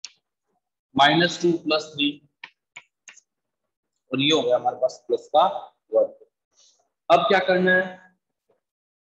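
A man speaks calmly and clearly, close by, in short bursts with pauses.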